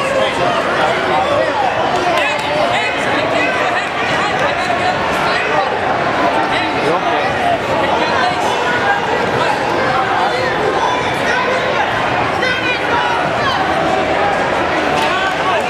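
A crowd of adults and children chatters steadily in a large echoing gym.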